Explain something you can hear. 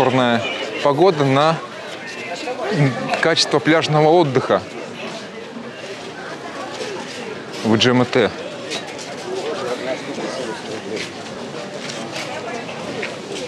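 A crowd of people chatter outdoors on a busy street.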